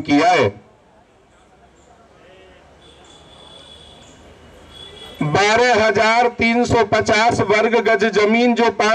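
A man speaks forcefully into a microphone over loudspeakers, outdoors.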